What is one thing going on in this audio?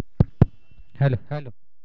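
A man calls out briefly outdoors.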